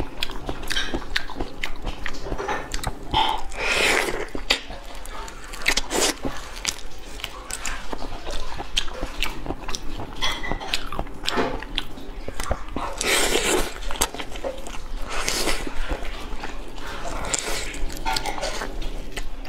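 Crunchy shrimp shells crack and snap between fingers.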